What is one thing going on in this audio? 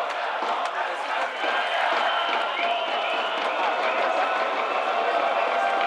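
A large stadium crowd murmurs and cheers outdoors.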